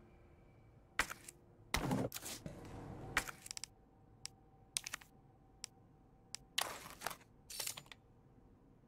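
Short menu clicks tick repeatedly.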